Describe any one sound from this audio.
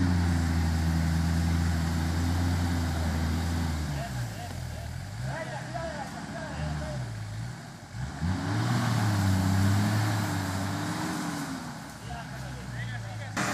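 Mud squelches and splashes under the truck's tyres.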